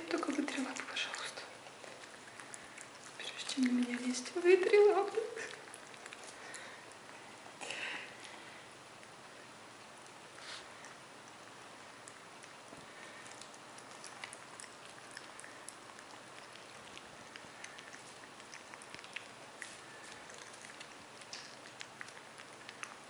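A raccoon laps and chews food.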